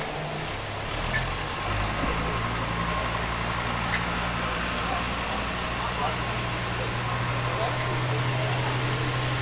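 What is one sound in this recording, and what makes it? A low motor hums steadily.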